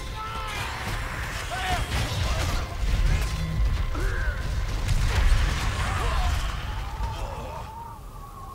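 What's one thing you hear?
Soldiers shout in a battle.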